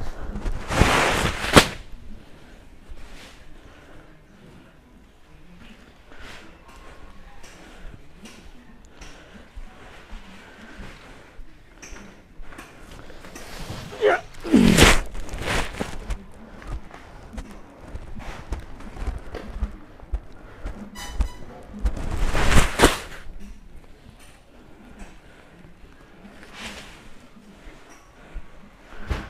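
Heavy sacks thump and rustle as they are lifted and dropped.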